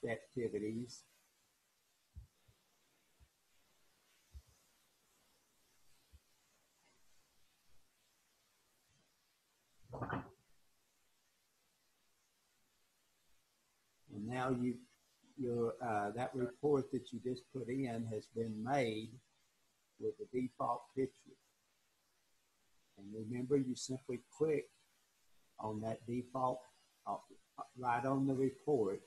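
An elderly man talks calmly over an online call.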